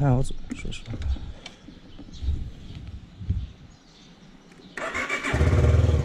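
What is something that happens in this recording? A motorcycle engine rumbles at low speed.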